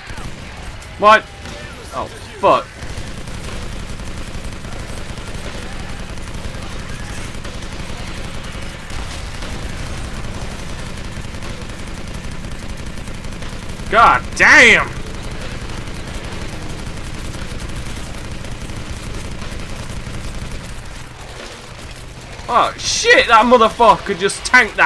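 A man shouts with excitement into a close microphone.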